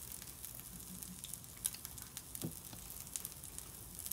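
A spatula scrapes against a pan.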